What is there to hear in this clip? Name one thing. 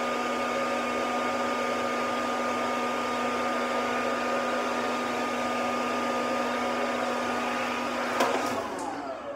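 A hair dryer blows with a loud, steady whir.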